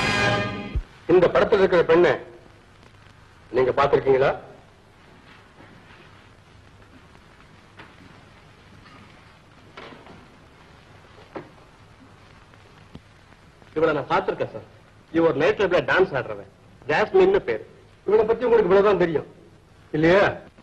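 A man speaks firmly and sternly, close by.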